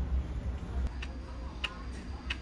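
A ceramic tea cup on a tray clinks as it is set down on a table.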